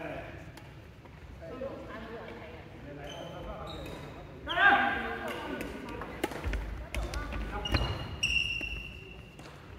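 People chatter in a large echoing hall.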